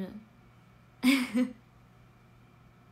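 A young woman laughs brightly.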